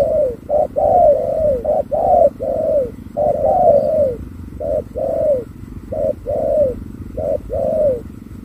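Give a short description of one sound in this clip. A bird calls over and over with short, hoarse, falling hoots close by.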